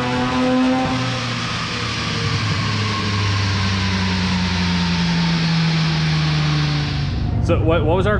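A car engine winds down, its pitch slowly falling.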